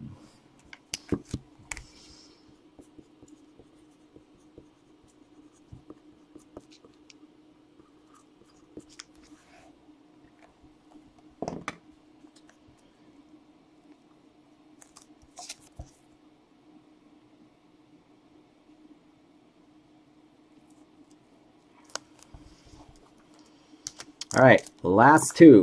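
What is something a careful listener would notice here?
Plastic card cases click and rattle as they are handled.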